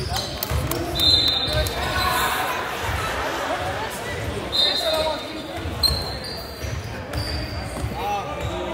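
Sneakers squeak sharply on a hardwood floor in an echoing hall.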